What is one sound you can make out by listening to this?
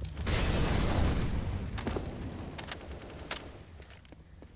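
An incendiary fire roars and crackles.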